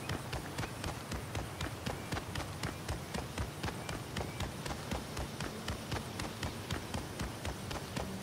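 Quick footsteps run steadily over grass.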